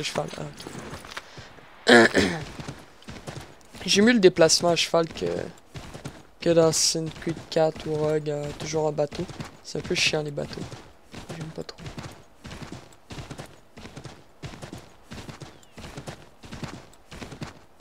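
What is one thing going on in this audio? A horse gallops with quick, steady hoof beats.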